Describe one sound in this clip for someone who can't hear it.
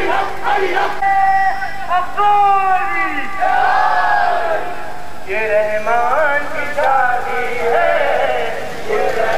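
A crowd of men sings loudly outdoors.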